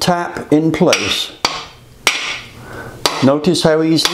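A mallet taps on metal.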